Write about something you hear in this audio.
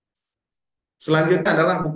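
A man speaks through an online call.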